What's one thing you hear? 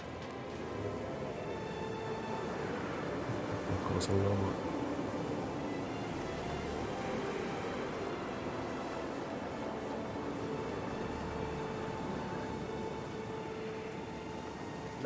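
Wind howls steadily in a blizzard.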